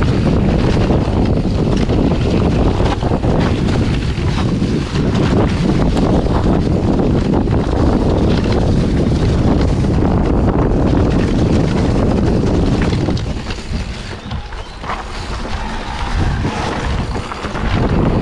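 Bicycle tyres crunch and rattle over dry leaves and dirt.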